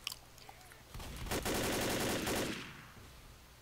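An automatic rifle fires a burst.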